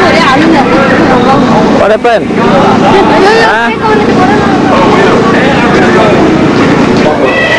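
Young women and girls chatter and call out close by, many voices overlapping.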